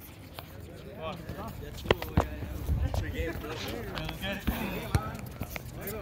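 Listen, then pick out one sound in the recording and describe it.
A ball is kicked with a dull thump on a hard court.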